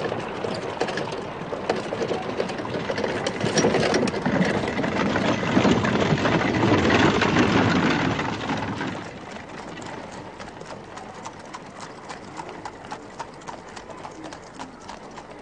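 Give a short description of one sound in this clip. Horses' hooves clop on the road.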